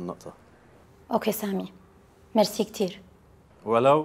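A woman speaks calmly on a phone, close by.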